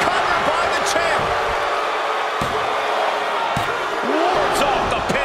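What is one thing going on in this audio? A referee slaps the ring mat in a count.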